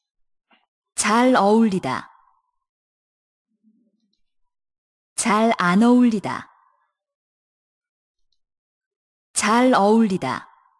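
A young man speaks short phrases clearly into a microphone, pausing between them.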